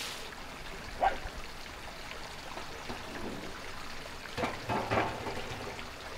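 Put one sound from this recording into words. A metal ladle clinks against a metal pan.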